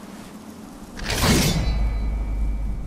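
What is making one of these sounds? A blade sweeps through the air with a loud whoosh.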